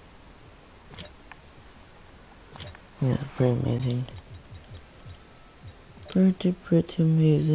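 Short game menu clicks sound as selections change.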